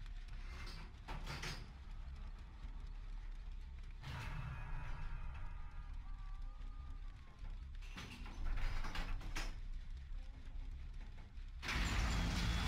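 Metal parts rattle and clank as a machine is worked on.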